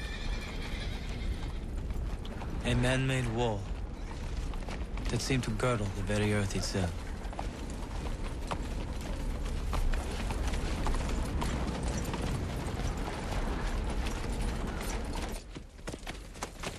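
Horses' hooves thud on dry ground.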